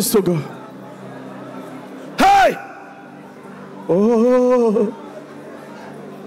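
A large crowd murmurs and prays softly in the background.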